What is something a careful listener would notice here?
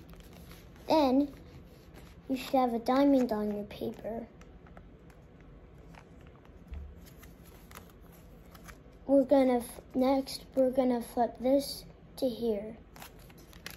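A young boy talks close by, with animation.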